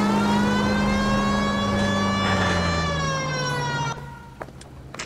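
A car engine hums steadily and then winds down.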